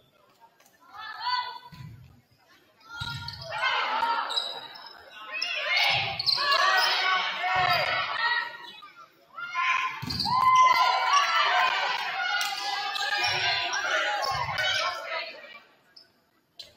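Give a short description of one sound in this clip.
Young women call out and shout during play in an echoing hall.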